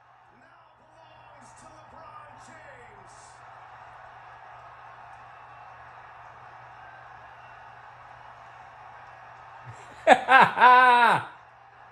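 An arena crowd cheers, heard through a television.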